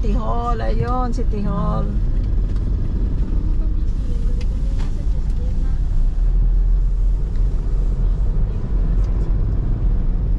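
A car engine rumbles low and steady, heard from inside the car.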